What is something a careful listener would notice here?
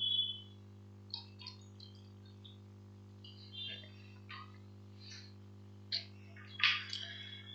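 A man speaks calmly into a microphone, in short bursts.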